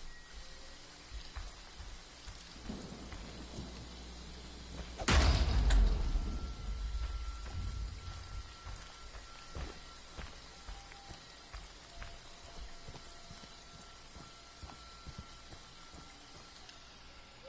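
Heavy footsteps crunch on gravel and dry leaves.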